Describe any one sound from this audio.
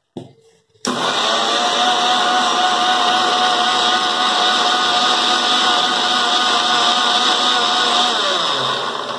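A mixer grinder whirs loudly at high speed.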